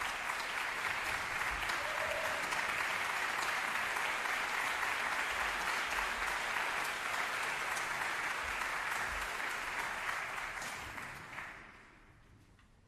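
An audience applauds loudly in a large echoing hall, then the applause dies away.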